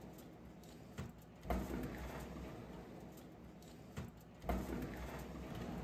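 Metal pans scrape and clatter onto an oven rack.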